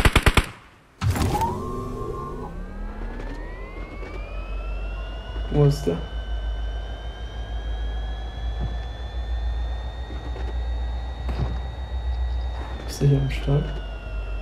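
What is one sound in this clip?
A car engine starts and revs up, then hums steadily while driving.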